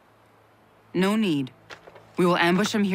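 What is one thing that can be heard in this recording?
A young woman answers firmly.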